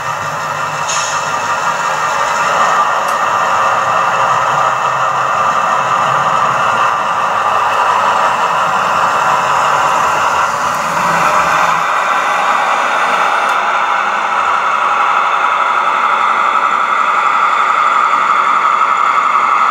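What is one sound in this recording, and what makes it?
A small model train hums and rattles steadily along its track.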